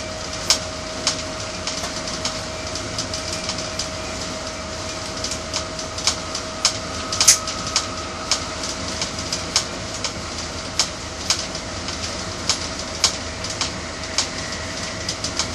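Train wheels click over rail joints again and again.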